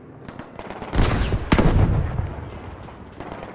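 Gunfire cracks in loud bursts.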